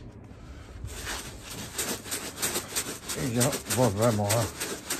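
A plastic lid clicks and rattles against a plastic tub.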